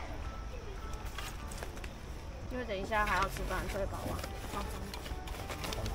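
Items clatter and rustle as they are packed into a case.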